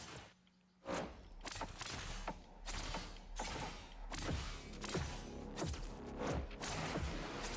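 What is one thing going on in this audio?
Blades swish and strike in quick bursts during a fight.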